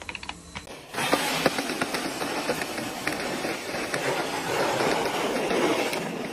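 A snow shovel scrapes along paving.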